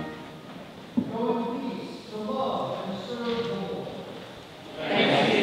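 An elderly man speaks calmly in a large echoing hall.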